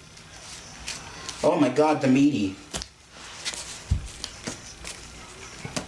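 Playing cards are placed and slid on a soft mat with light taps.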